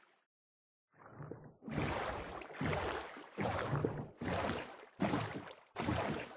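Oars splash rhythmically in water.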